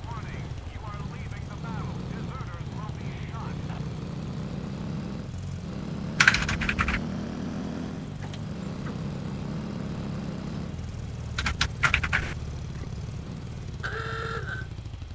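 A motorcycle engine rumbles steadily as it drives along.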